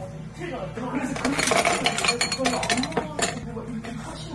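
Ice cubes clatter into a glass.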